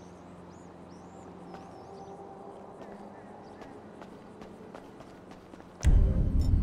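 Footsteps run quickly across hard concrete.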